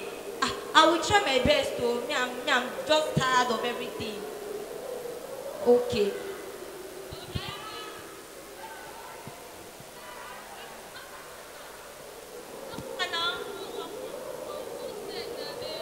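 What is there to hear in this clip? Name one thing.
A man speaks with animation over a loudspeaker in a large echoing hall.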